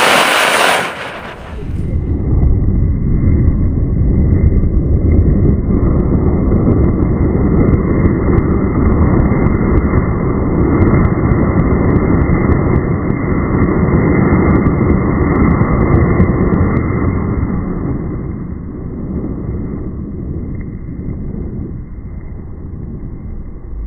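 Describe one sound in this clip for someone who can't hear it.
A firework fountain roars loudly with a rushing hiss.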